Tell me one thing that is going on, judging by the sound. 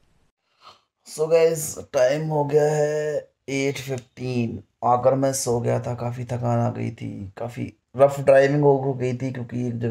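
A man talks close by with animation.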